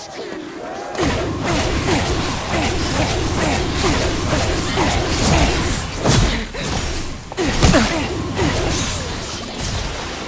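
Magic blasts crackle and burst in quick succession.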